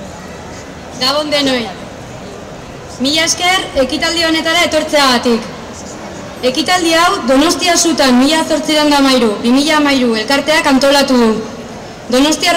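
A young woman reads aloud calmly through a microphone.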